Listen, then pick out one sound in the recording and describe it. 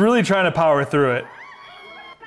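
Young girls scream with excitement.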